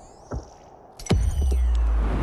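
A football is kicked hard with a thud.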